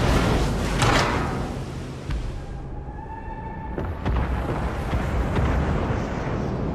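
Waves wash steadily against a ship's hull.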